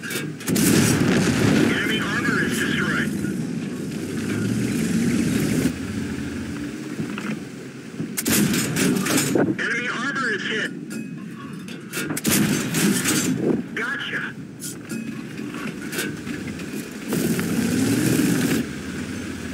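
A tank engine rumbles low and heavy.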